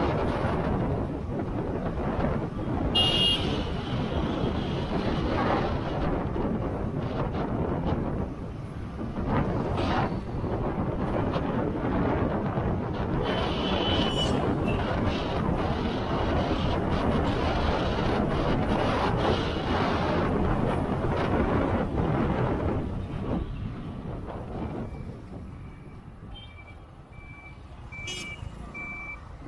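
Wind rushes loudly past a moving vehicle outdoors.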